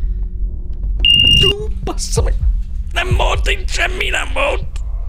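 A man speaks close to a microphone, in short, animated bursts.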